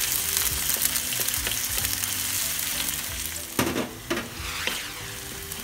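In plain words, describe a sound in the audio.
A wooden spatula scrapes and stirs in a pan.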